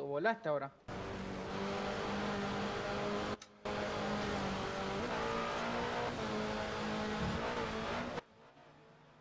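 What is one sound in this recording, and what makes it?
A racing car engine runs at high speed.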